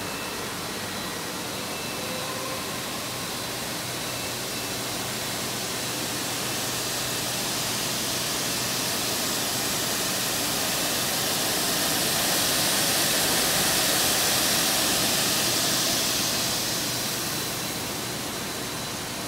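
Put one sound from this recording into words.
Machinery hums steadily, louder up close around the middle and fading toward the end.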